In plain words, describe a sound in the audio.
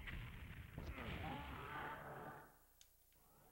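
A loud explosion booms from a game.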